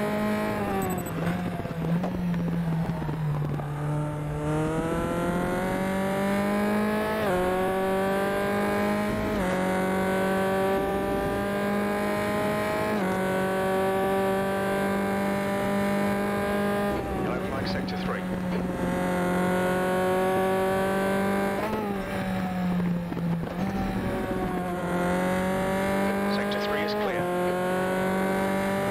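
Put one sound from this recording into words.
A racing car engine roars and revs up through the gears, dropping in pitch at each gear change.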